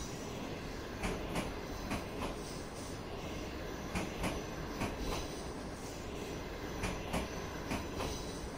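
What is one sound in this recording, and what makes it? Train wheels clatter rhythmically over rail joints as a train rolls past.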